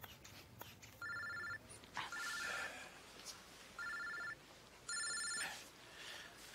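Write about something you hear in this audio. A phone rings in short repeated bursts.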